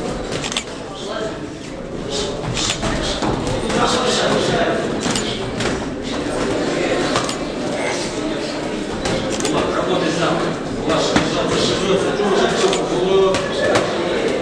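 Gloved punches thud on padding.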